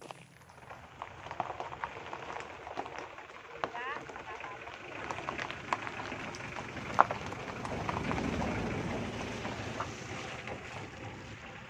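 A truck engine rumbles as the truck drives slowly past close by.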